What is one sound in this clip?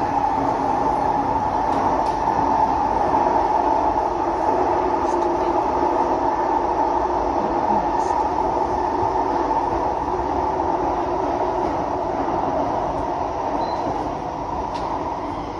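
A train rumbles and whines steadily along the track.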